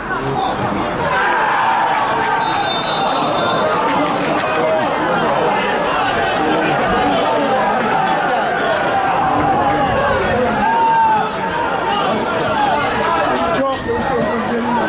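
Spectators cheer and chatter loudly after a goal.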